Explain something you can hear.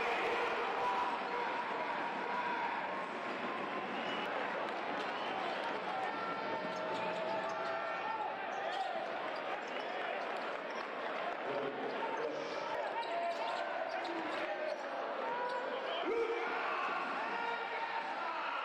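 Sneakers squeak sharply on a hardwood court.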